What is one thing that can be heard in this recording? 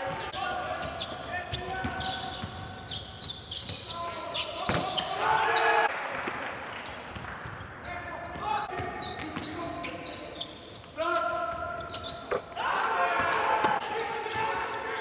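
Sneakers squeak on a hardwood basketball court.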